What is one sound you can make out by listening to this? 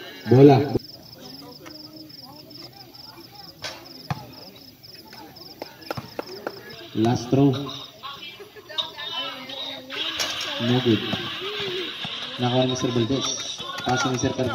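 Men shout and call out across the court.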